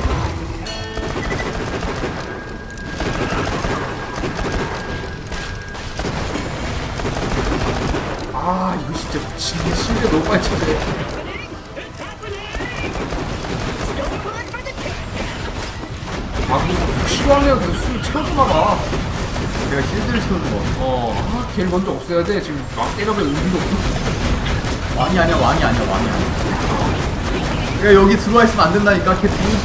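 Gunfire and explosions rattle from a video game.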